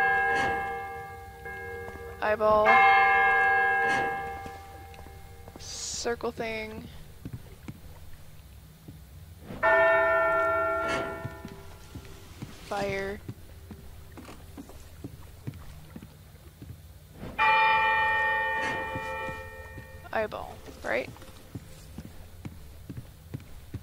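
Footsteps clank on metal grating and wooden boards.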